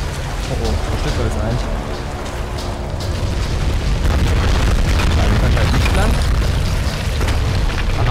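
A torch flame crackles close by.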